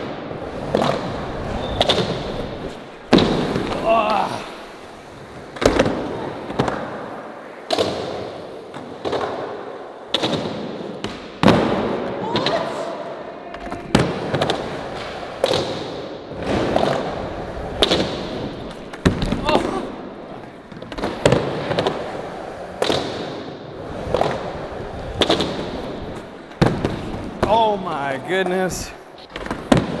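Skateboard wheels roll and rumble on a hard floor.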